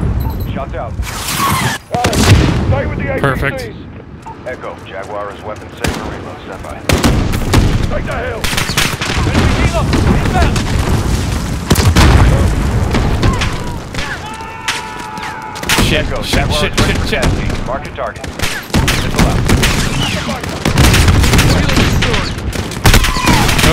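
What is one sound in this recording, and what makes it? Gunfire cracks and booms in bursts.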